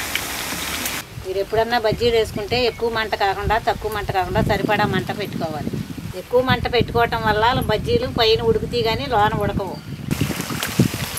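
An elderly woman sings nearby.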